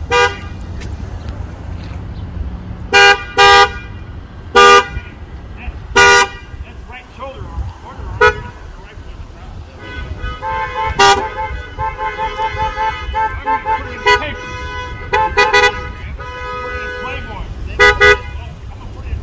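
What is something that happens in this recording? Car horns honk in short bursts.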